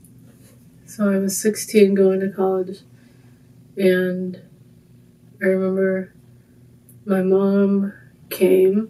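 A young woman sings softly and slowly, close by, in short phrases.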